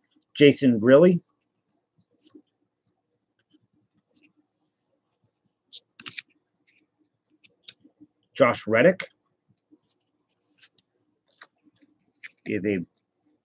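Trading cards rustle and click as hands shuffle them.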